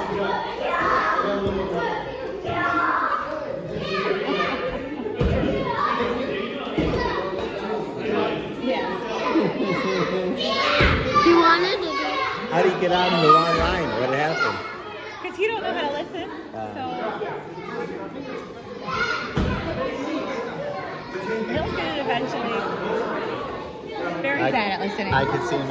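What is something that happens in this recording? Children chatter and call out loudly in a large echoing hall.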